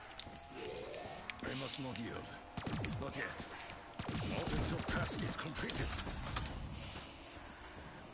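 Guns fire in bursts of rapid shots.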